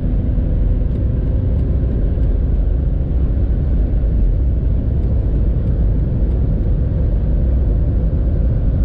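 Wind and tyres roar at high speed.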